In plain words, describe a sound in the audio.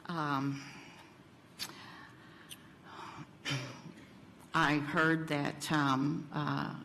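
A woman speaks calmly into a microphone in pauses.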